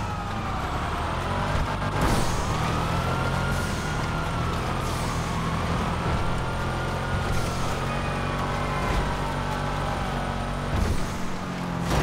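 A car engine roars loudly, revving up and down as gears shift.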